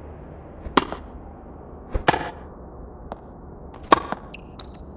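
A tennis ball is struck sharply by rackets, back and forth.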